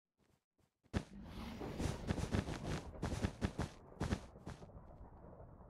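Blocks are placed with quick soft taps.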